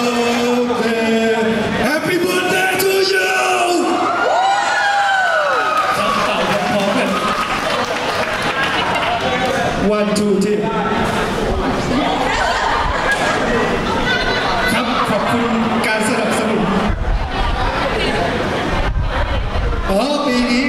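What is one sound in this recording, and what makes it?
A young man talks with animation through a microphone over loudspeakers.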